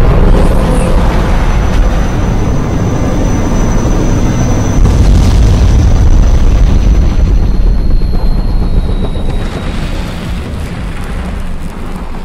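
A helicopter's rotor thumps loudly as the helicopter flies low overhead.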